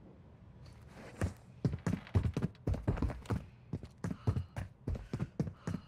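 Quick footsteps clatter on stairs.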